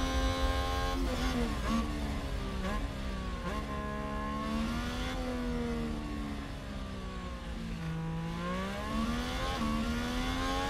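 A racing car engine drops in pitch as the car brakes and shifts down, then revs back up.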